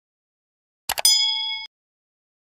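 A small bell chimes briefly.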